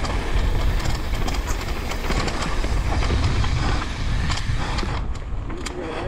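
Bicycle tyres rumble over a bumpy dirt trail.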